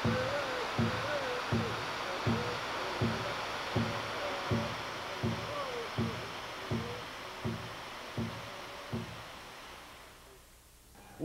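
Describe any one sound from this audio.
Water rushes and roars as it pours down a waterfall.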